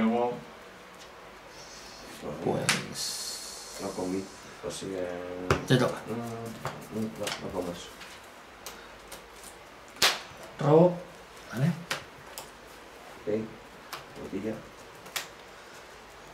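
Playing cards riffle and snap as they are shuffled.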